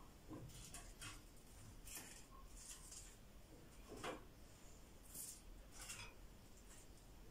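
Fried pastries rustle and crinkle as hands arrange them on a plate.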